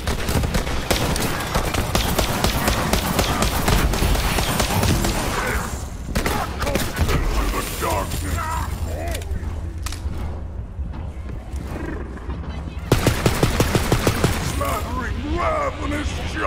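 Rapid gunfire rattles in quick bursts.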